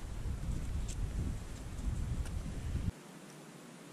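Wind rumbles low against the microphone.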